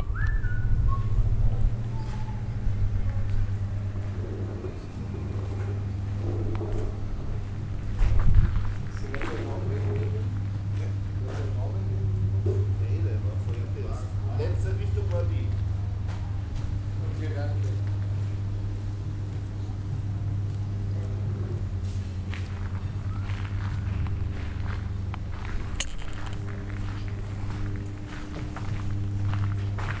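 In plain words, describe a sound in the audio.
A motor hums low and steady.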